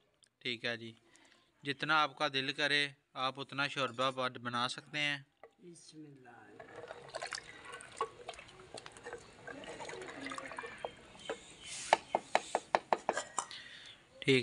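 A wooden spoon stirs and knocks against a clay pot.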